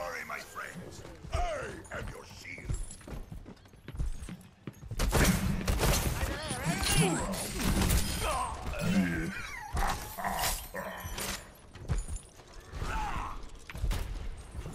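A heavy game shotgun fires blasts.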